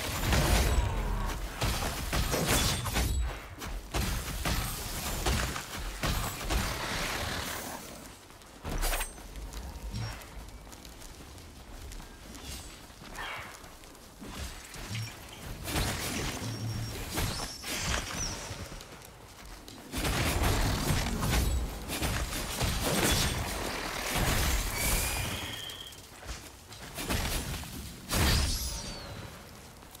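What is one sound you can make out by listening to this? Magic spells whoosh and burst in a fight.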